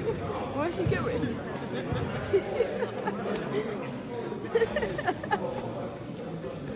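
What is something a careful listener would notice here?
Young people chatter and call out at a distance in a large echoing hall.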